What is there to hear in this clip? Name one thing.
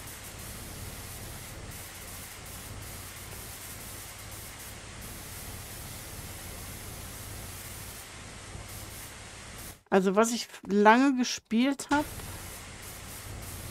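A pressure washer sprays a steady hissing jet of water.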